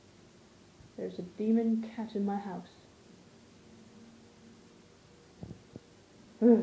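A young woman speaks close by, in a casual, animated voice.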